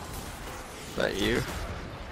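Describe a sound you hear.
A man exclaims loudly close to a microphone.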